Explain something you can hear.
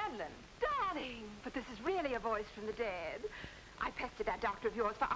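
A middle-aged woman talks with animation into a telephone.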